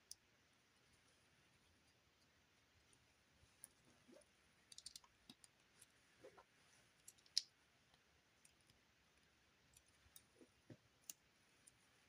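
Small plastic bricks click and snap together.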